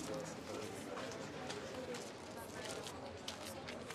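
Footsteps click on pavement.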